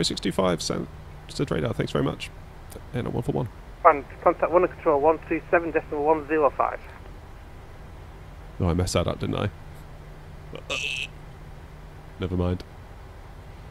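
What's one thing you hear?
A man talks calmly into a headset microphone.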